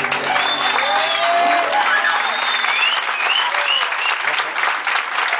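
People in a crowd cheer and whistle.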